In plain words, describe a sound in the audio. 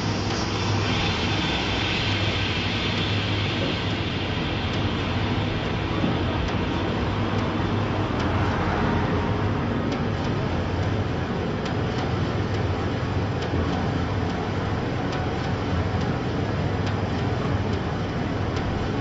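Steady city traffic hums in the background.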